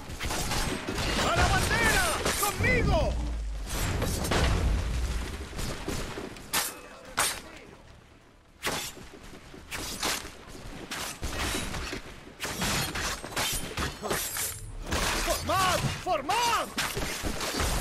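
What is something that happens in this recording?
Soldiers shout during the battle.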